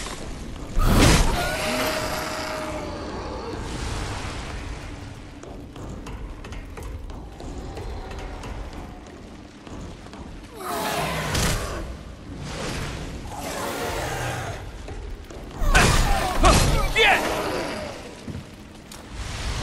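A creature snarls and shrieks.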